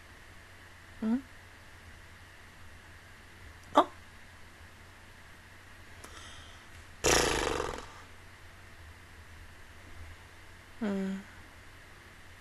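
A young woman makes a few brief, soft vocal sounds close to a microphone, with long quiet gaps between them.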